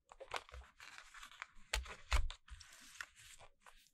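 A plastic disc clicks as it is pressed into a holder.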